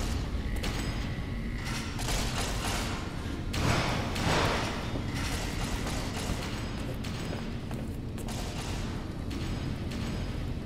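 Footsteps clang on a metal grating floor.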